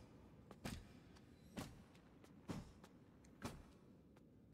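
Footsteps fall on a stone floor in a large echoing hall.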